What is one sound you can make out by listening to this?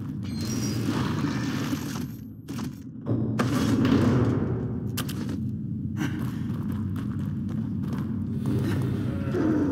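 Footsteps splash through shallow water in an echoing tunnel.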